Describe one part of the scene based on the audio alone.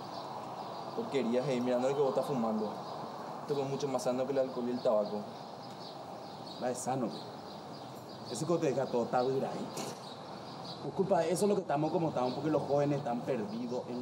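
A man speaks nearby in a rough, animated voice.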